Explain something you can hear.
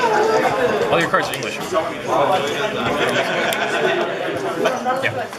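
Playing cards rustle as they are shuffled in hand.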